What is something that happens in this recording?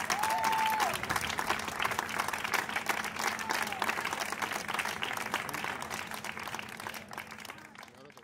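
A crowd applauds loudly, then the clapping slowly fades.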